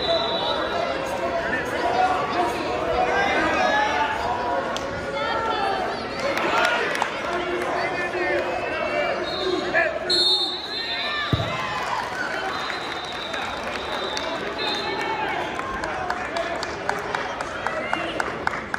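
A crowd of spectators chatters and calls out throughout a large echoing hall.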